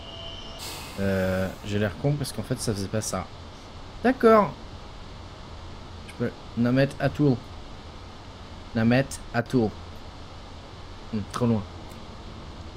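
A man talks into a close microphone with animation, in short bursts.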